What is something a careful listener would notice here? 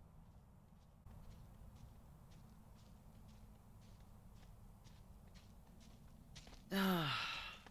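Footsteps tread softly on a dirt path.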